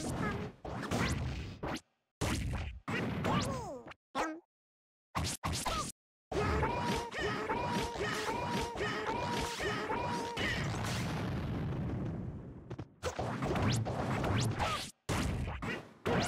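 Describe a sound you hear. Game fighting sounds play, with sharp hits and impacts.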